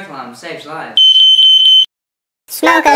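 A smoke alarm beeps shrilly.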